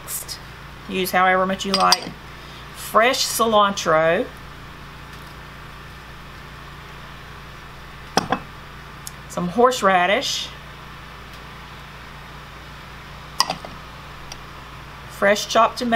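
A spatula scrapes and stirs inside a glass bowl.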